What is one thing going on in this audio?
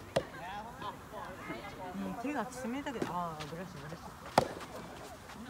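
A tennis ball is struck with a sharp pop.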